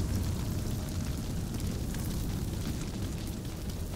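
Fire crackles and roars.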